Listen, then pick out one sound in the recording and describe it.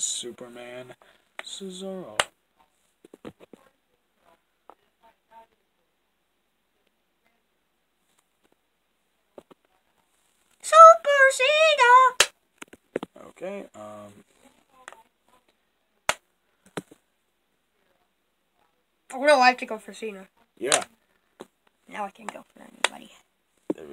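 Hard plastic pieces tap and click against a game board.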